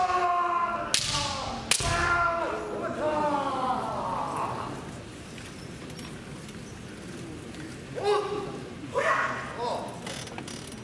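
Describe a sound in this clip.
Fencers shout loud, drawn-out battle cries in a large echoing hall.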